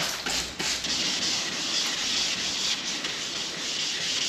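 Sandpaper rubs back and forth on a flat panel.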